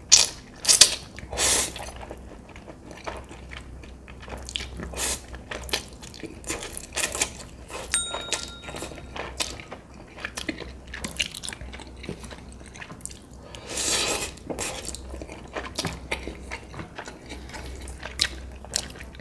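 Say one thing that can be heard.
A man chews noisily, close to a microphone.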